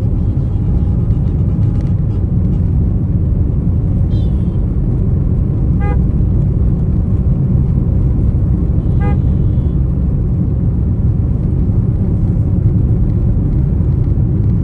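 Tyres roll on the road with a steady low rumble.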